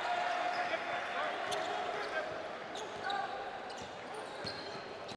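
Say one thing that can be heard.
A crowd cheers and murmurs throughout a large echoing arena.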